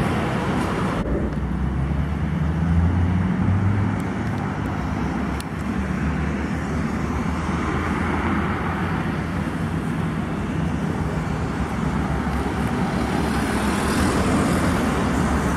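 A truck engine labours loudly close by as it climbs toward the listener.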